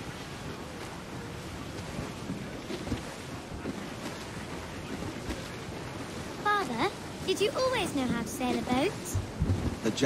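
Wind blows steadily over a sailing ship.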